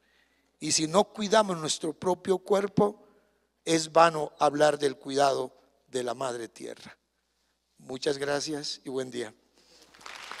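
An elderly man speaks slowly and firmly into a microphone.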